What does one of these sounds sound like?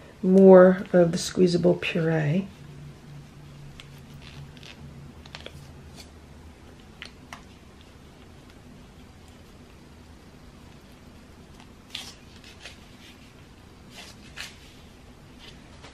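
A plastic pouch crinkles softly as it is squeezed.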